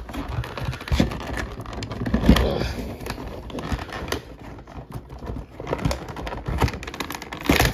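A cardboard box taps and knocks.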